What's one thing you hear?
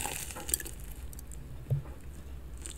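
A young woman bites into crunchy food close to a microphone.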